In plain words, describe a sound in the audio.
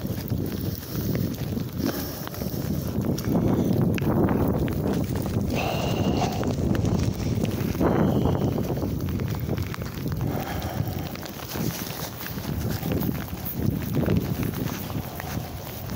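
Footsteps squelch on a wet path.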